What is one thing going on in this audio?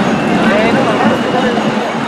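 A crowd of men and women talk nearby outdoors.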